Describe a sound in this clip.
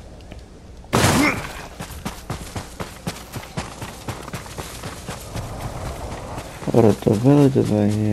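Footsteps crunch through snow and brush.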